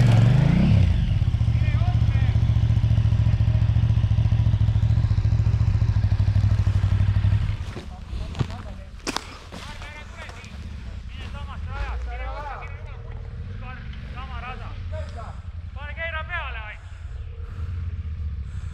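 A motorcycle engine drones steadily as it pulls away, then fades to a faint distant hum.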